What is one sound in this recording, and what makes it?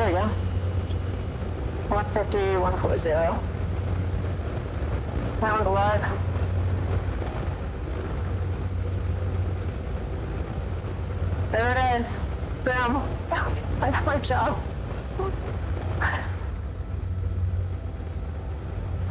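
An aircraft engine drones steadily in a small cockpit.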